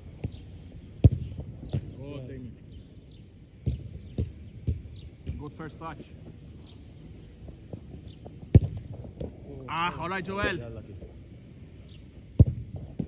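A football is kicked hard with sharp thumps.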